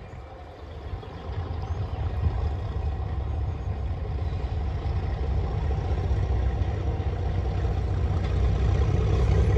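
A distant train rumbles as it approaches.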